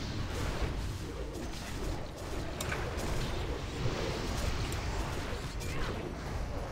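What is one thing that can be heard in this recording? Spell effects and weapon hits crackle and whoosh in a video game battle.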